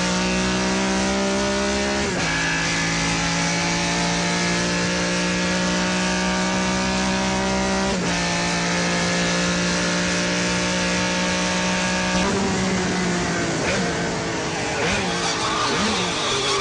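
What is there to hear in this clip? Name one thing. A car engine roars loudly at high speed, its pitch dropping sharply with each gear change.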